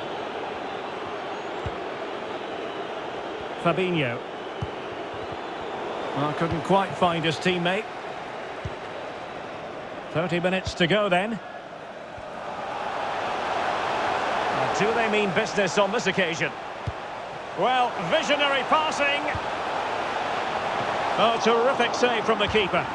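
A large stadium crowd murmurs steadily and swells into a roar.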